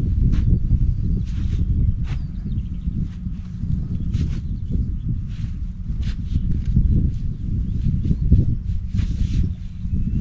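A shovel scrapes and digs into soil.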